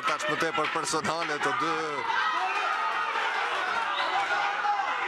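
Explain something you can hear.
A crowd chatters and murmurs in a large hall.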